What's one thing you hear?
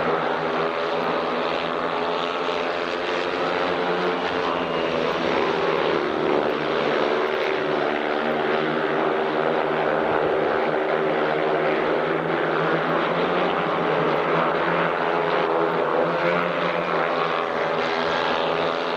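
Motorcycle engines roar loudly as the bikes race and slide through bends.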